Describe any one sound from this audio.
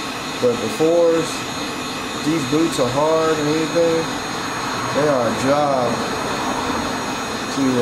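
A cordless drill whirs in short bursts.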